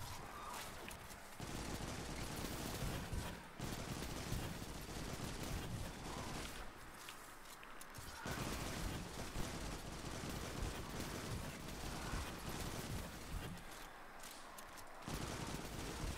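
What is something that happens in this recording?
Rapid gunshots fire with loud blasts.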